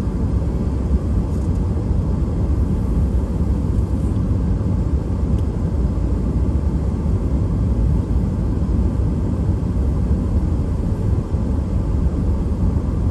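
Tyres roll with a low rumble on the road.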